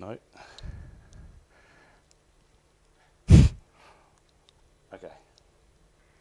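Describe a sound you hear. A man speaks through a microphone, pausing often.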